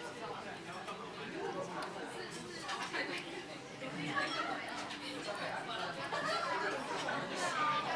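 Chopsticks click against a ceramic dish.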